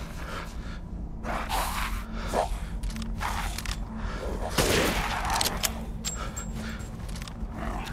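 A rifle fires sharp loud shots.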